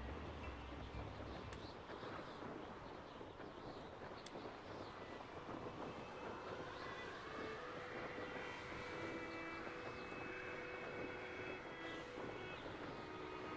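Wind rushes steadily past during a flight.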